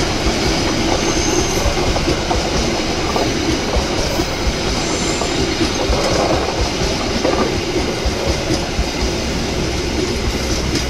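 A passenger train rumbles past close by on the tracks.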